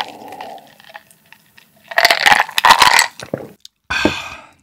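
Ice cubes clink in a glass.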